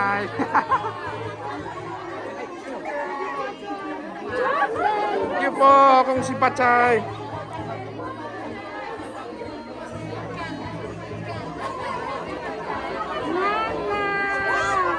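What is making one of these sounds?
People chatter and laugh nearby in a lively crowd.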